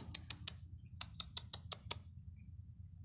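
Cats lap and chew food noisily from a metal dish.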